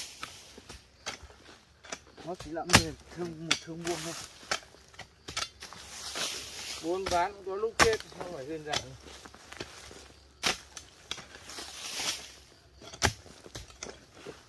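Hoes strike and scrape dry earth again and again.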